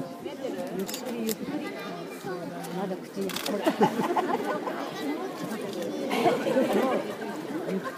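Water splashes as large animals swim and paddle.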